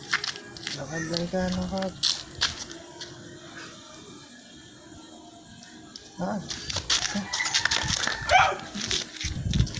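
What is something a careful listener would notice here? A dog whines and yelps close by.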